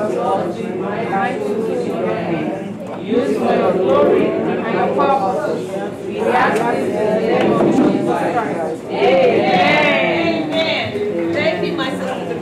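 A woman speaks steadily nearby.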